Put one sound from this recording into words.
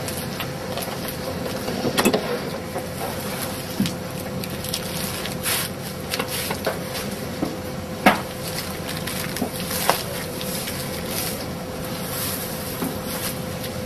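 A machine plate slides and knocks into place.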